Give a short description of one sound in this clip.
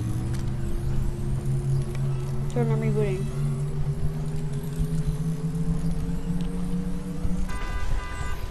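A van's engine hums steadily, then cuts off.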